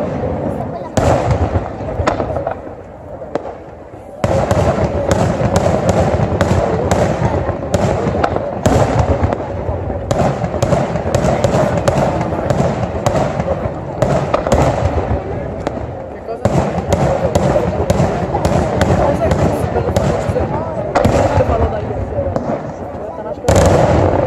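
Fireworks crackle and bang in rapid bursts far off across a valley.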